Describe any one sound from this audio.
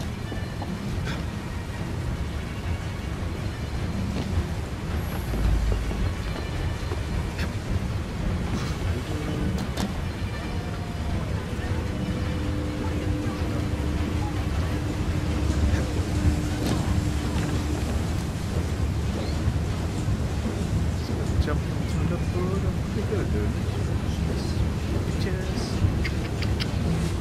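Steady rain patters down outdoors.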